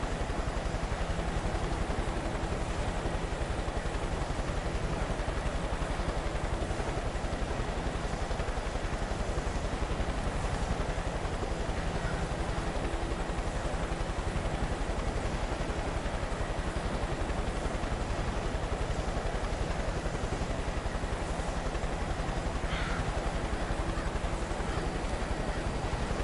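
A helicopter engine hums and thrums steadily nearby.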